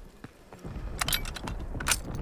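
A gun's metal parts click and clack as it is handled.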